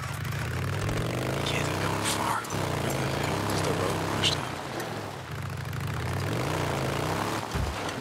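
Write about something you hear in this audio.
A motorcycle engine rumbles steadily, revving up and down.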